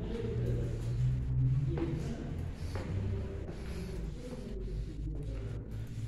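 Footsteps climb stone stairs.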